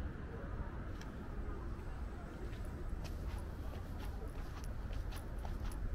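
Footsteps tap lightly on a hard walkway.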